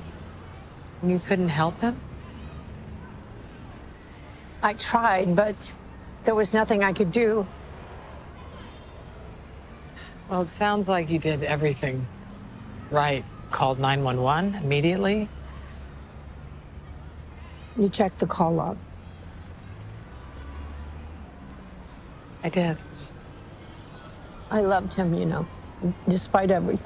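A woman speaks quietly and earnestly, close by.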